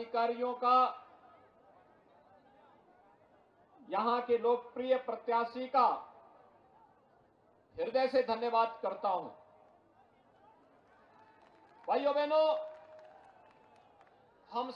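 A middle-aged man speaks forcefully into a microphone in short bursts, with pauses.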